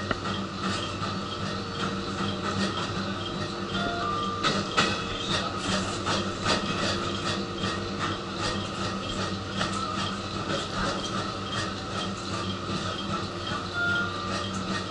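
A train car rumbles and hums steadily while moving.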